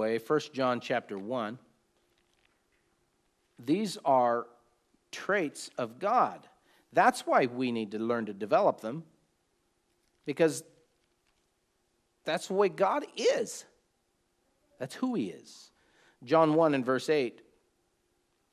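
A middle-aged man reads aloud and speaks in a calm, close voice, with pauses.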